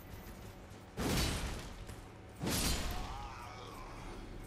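A greatsword slashes into a body with a heavy swoosh and impact.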